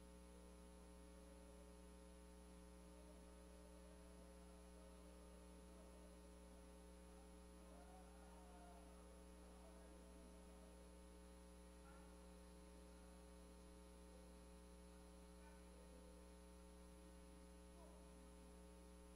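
A man prays aloud faintly at a distance.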